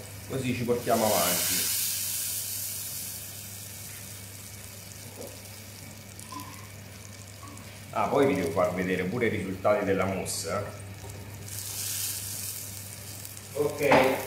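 Liquid sizzles as it is poured into a hot pan.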